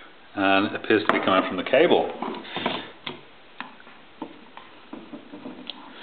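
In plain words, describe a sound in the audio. A rotary dial clicks as it is turned.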